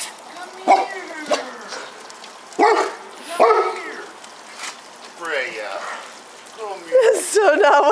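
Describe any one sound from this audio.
A dog barks nearby.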